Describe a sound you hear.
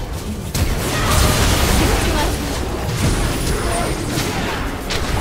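Magical blasts and weapon clashes crackle in a hectic fight.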